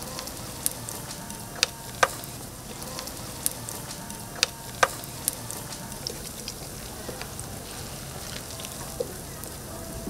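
A metal press clanks sharply against a griddle.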